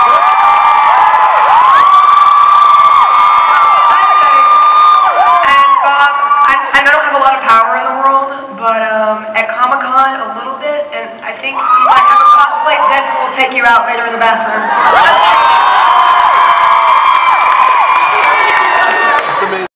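A crowd cheers and screams loudly in a large hall.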